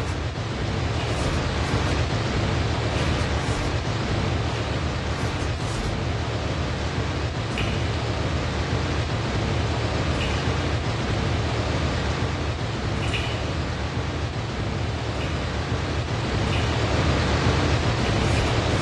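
Soft scraping steps sound as a figure climbs a metal pipe.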